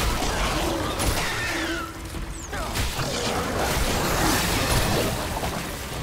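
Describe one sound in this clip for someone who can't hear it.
Flesh splatters wetly as a creature is torn apart.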